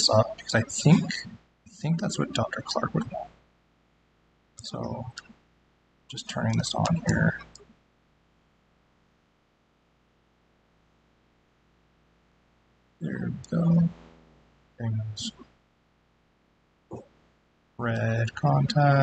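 A man speaks calmly over an online call, pausing now and then.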